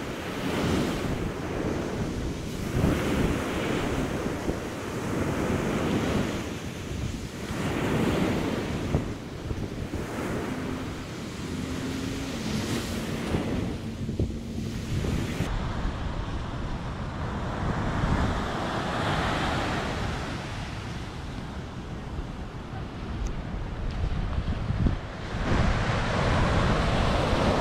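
Wind buffets the microphone with a low rumble.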